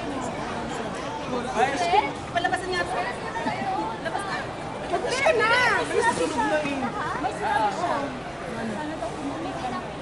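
A young woman talks with animation close by.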